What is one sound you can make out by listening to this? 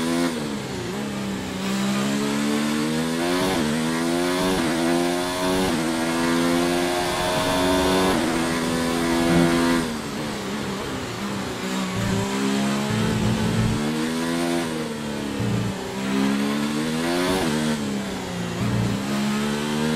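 A racing car engine screams at high revs, rising through the gears and dropping as it brakes.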